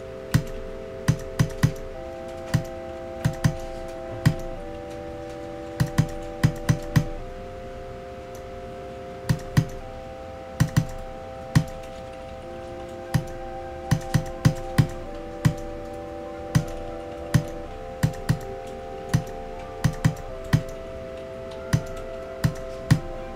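Punchy bass drum hits thump in an uneven rhythm.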